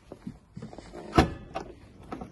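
A car's tailgate latch clicks open.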